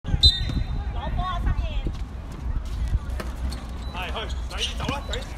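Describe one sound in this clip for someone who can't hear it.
Young girls shout and call out outdoors.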